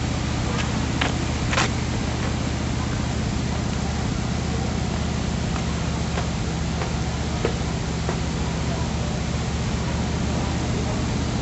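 Footsteps stomp on a dirt ground.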